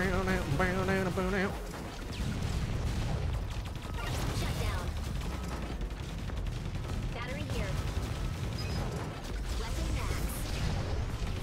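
Game gunfire and explosions rumble and crackle steadily.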